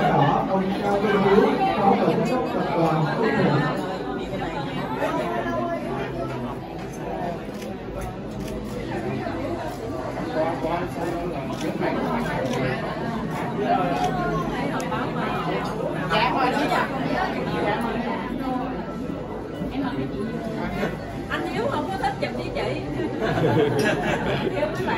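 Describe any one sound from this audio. Many people chatter in the background.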